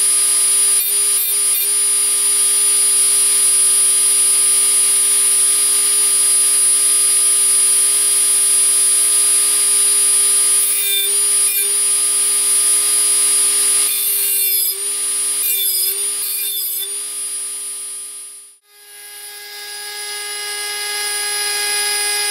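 A small rotary tool whines steadily at high speed.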